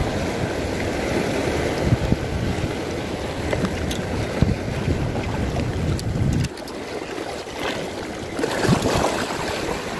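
Waves wash against rocks close by.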